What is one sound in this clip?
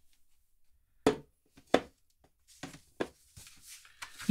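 A glass knocks lightly onto a table.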